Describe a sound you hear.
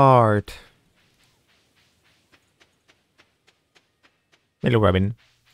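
Soft footsteps tap quickly and evenly on dirt.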